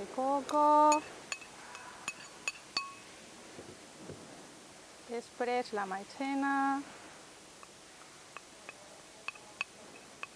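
Water trickles as it is poured into a glass bowl.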